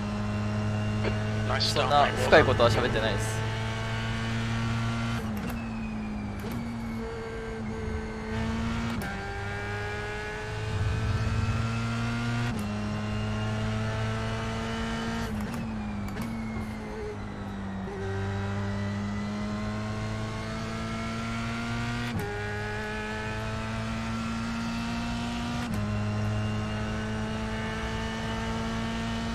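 A racing car engine roars, its pitch climbing and then dropping sharply with each gear change.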